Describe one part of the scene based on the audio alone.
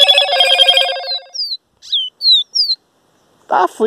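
A caged bird sings loud, rapid trills and sharp falling whistles close by.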